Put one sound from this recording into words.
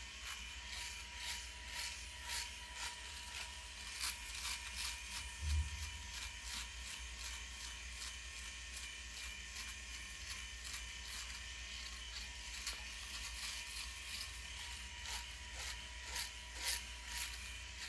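An electric shaver buzzes steadily and rasps against stubble close by.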